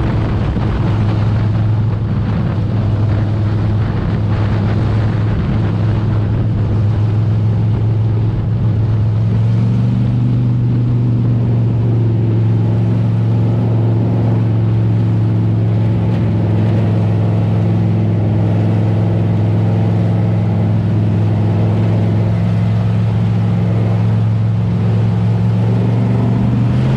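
A race car engine roars loudly from close by, rising in pitch around halfway.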